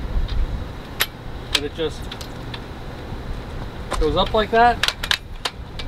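Metal ladder sections click and clack as the ladder extends.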